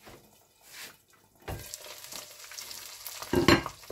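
A glass lid clinks as it is lifted off a frying pan.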